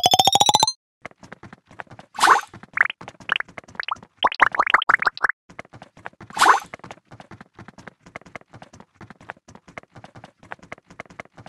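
Soft quick game pops and ticks patter on.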